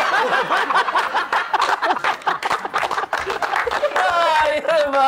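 Several men laugh loudly and heartily.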